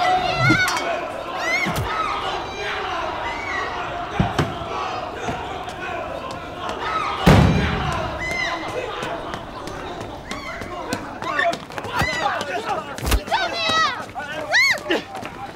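A woman screams for help in panic.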